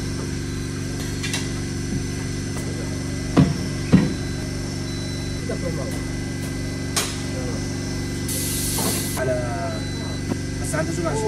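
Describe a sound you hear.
A ratchet wrench clicks as it turns bolts in an engine block.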